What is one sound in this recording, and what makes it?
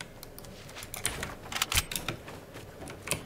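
A game wall is built with sharp clacks.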